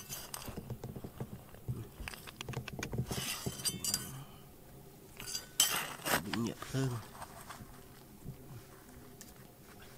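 Small stones clink together as a hand picks them up.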